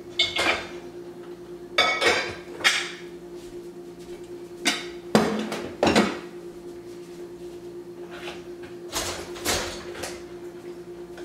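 Dishes clink and clatter as they are loaded into a dishwasher rack.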